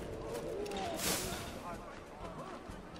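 Leafy bushes rustle loudly as someone pushes into them.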